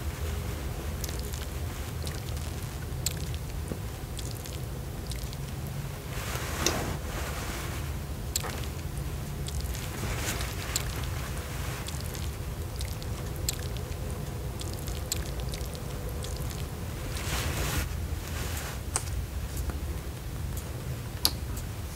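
Small objects click and tap when handled close by.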